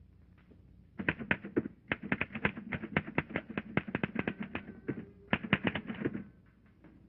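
A typewriter clatters with fast, rapid keystrokes.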